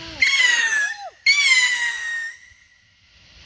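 Firework whistles shriek loudly outdoors, falling slightly in pitch.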